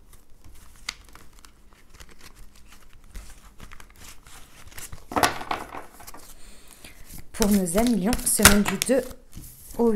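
Playing cards are shuffled with soft rustling and flicking.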